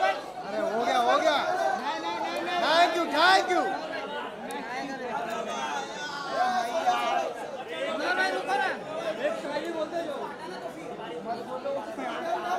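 A crowd of men and women chatters loudly nearby.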